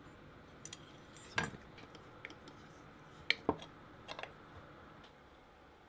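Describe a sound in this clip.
Small metal parts clink and tap together.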